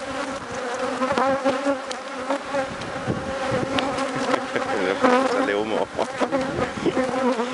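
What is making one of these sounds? Bees buzz steadily around an open hive.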